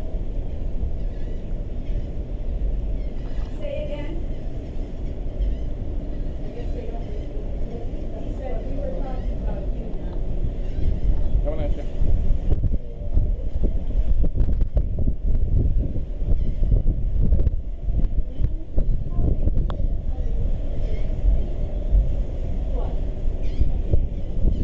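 Water rushes along a moving ship's hull.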